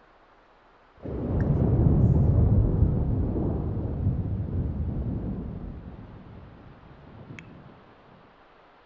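Thunder rumbles loudly and slowly fades away.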